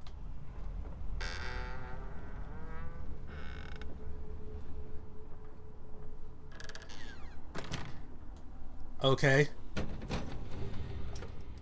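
Footsteps creak slowly across a wooden floor.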